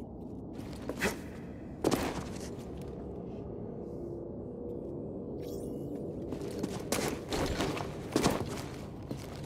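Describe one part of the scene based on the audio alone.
Boots land with heavy thuds after jumps.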